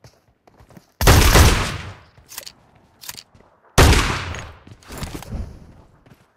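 A grenade bursts with a loud hissing blast.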